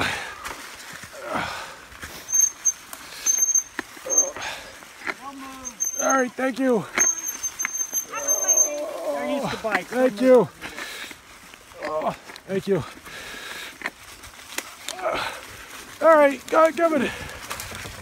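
Bicycle tyres crunch over dry leaves on a trail.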